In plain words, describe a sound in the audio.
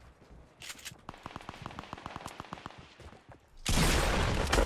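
Gunshots fire in quick rapid bursts.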